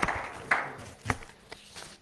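Paper rustles as a man handles pages.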